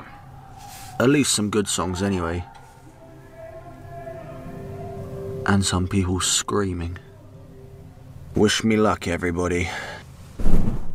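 A young man speaks close to a microphone in short bursts, with pauses between.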